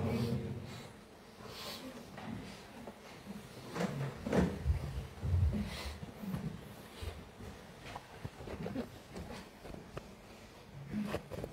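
A crowd shuffles and murmurs as people rise from their seats.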